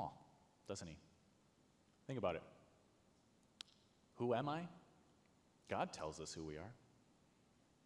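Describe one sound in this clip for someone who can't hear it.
A man speaks slowly and calmly into a microphone in a reverberant hall.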